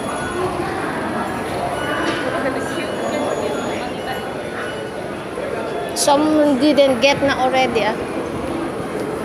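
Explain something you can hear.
A crowd murmurs and footsteps echo through a large hall.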